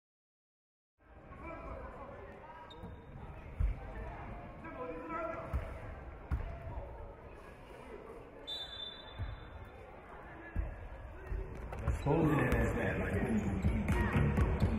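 Young boys call out in a large echoing hall.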